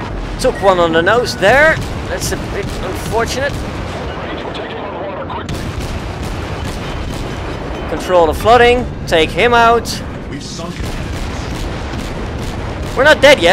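Shells explode with loud blasts.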